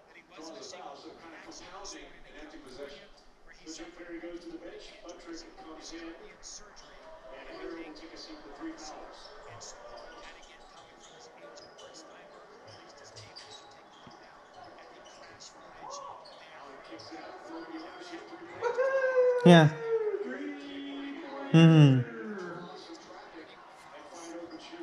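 A television plays quietly.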